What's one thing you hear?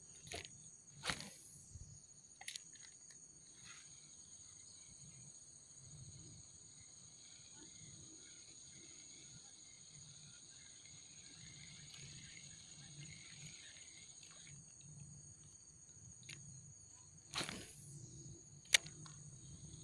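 A fishing reel clicks and whirs close by.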